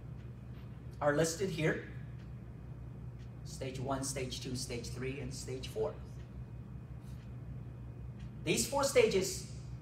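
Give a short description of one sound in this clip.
A young man speaks calmly, pausing between phrases.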